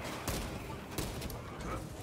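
Energy blasts burst with a crackling roar.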